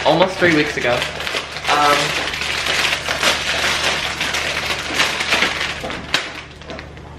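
A plastic wrapper crinkles and rustles.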